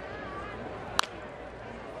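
A ball smacks into a catcher's mitt.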